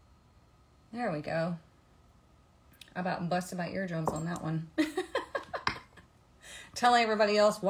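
A young woman speaks casually, close by.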